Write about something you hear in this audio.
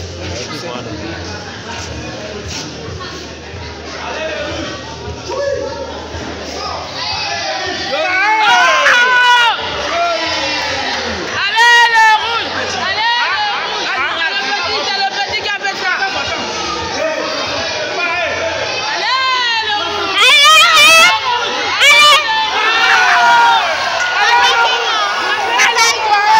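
A crowd of spectators chatters in an echoing hall.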